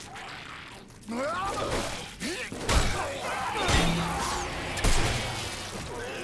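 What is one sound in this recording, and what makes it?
A monster screeches and snarls.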